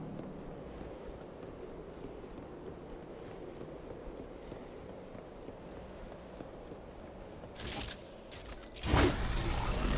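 Armoured footsteps run steadily over ground.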